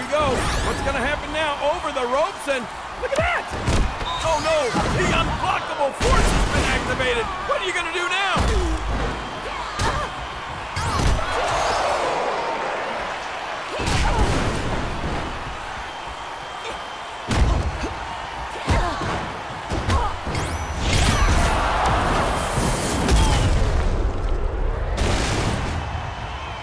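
A crowd cheers and roars.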